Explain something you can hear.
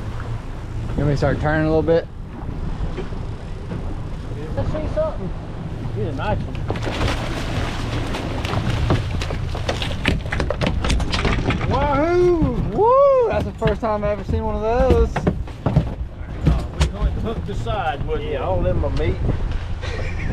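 An older man talks loudly nearby.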